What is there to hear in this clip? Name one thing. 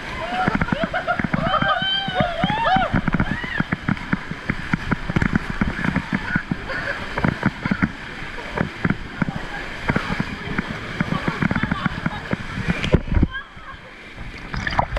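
Rushing water splashes and churns loudly close by.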